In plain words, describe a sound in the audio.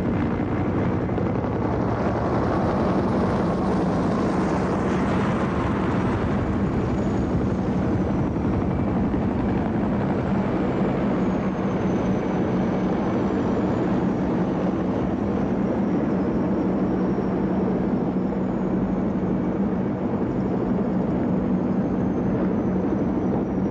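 Many helicopters fly overhead with a loud, steady thudding roar of rotors and engines.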